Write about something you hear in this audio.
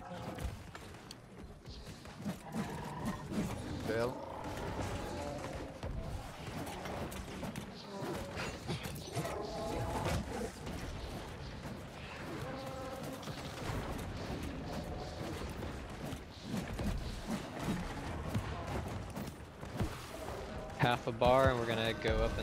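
Blows and magic blasts crash in a fast fight.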